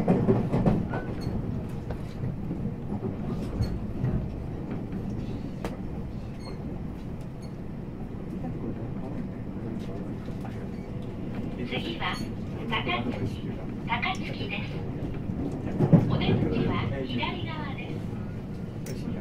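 An electric commuter train hums while standing at a platform.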